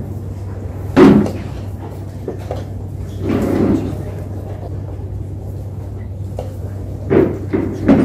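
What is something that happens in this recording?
A chess piece is set down on a wooden board with a soft knock.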